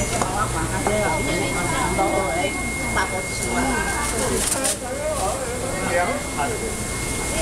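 A knife slices through raw meat.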